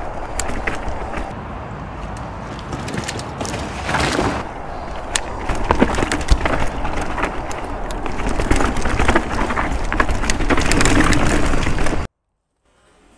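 Wind rushes past a microphone.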